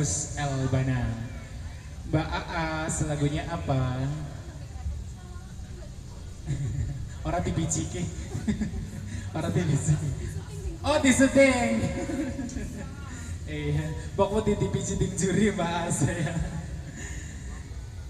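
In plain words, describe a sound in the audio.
A young man sings through a microphone over loudspeakers.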